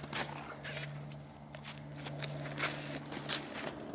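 A rifle fires a single shot outdoors.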